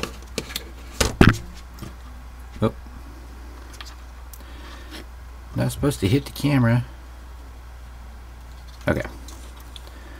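Small plastic parts tap and click on a hard surface as they are handled.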